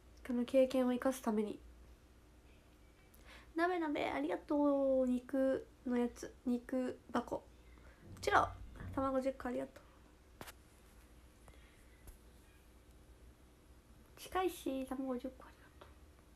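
A young woman talks animatedly, close to a phone microphone.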